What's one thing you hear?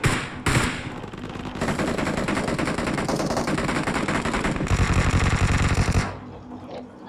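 Rapid gunfire rattles loudly nearby.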